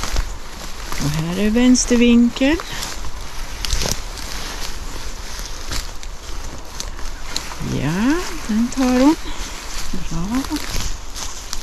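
A woman calls out nearby in a raised, sing-song voice.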